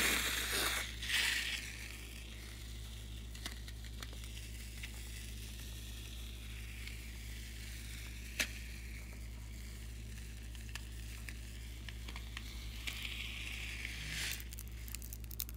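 Foam squirts and hisses from a balloon onto slime.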